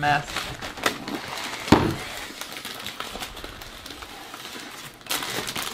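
A snack bag crinkles and rustles close by.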